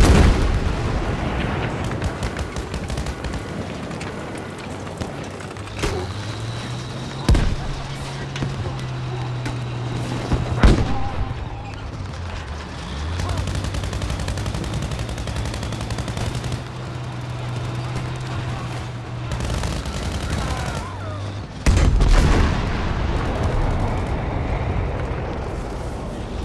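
Tank tracks clank over rubble.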